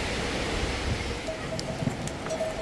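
Goat hooves clatter on loose stones.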